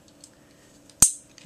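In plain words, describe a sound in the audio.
A small plastic toy clicks in a man's hands.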